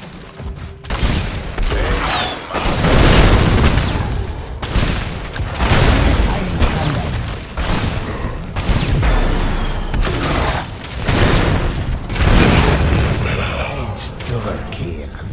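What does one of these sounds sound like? Game weapons fire and explosions burst in rapid bursts.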